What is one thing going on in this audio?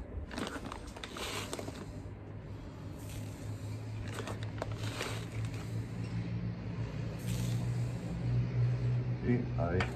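Dry seed rustles and pours into a plastic tub.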